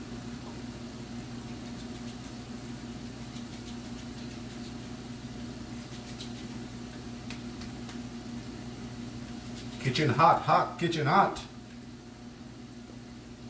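Oil sizzles steadily in a frying pan.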